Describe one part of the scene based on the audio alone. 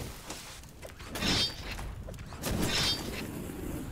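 Gunfire bursts from a game, with sharp shots.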